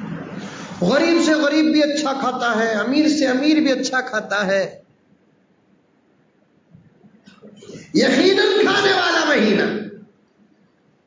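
A man preaches with animation into a microphone, his voice carried by a loudspeaker.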